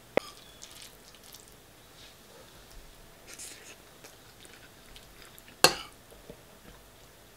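A fork clinks and scrapes against a bowl.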